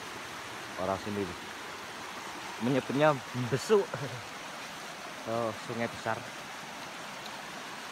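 A shallow stream rushes and gurgles over rocks.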